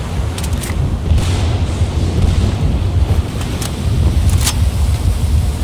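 Rifle shots crack sharply, close by.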